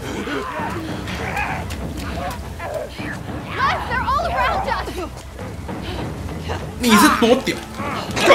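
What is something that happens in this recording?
Footsteps run across wet ground.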